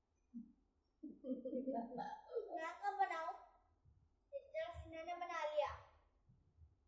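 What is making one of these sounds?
A boy laughs close by.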